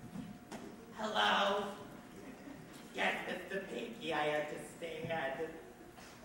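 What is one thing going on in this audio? A woman speaks clearly on a stage, heard in a large hall.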